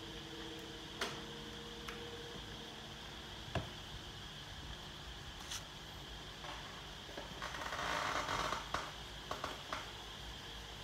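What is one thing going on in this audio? Clothing and objects rustle and knock close by.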